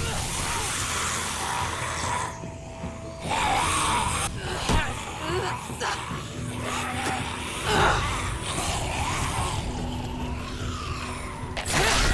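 A zombie growls and groans.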